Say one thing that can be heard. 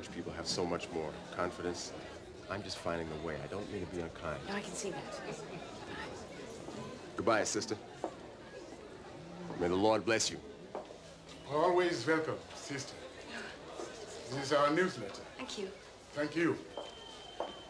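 A man speaks quietly close by.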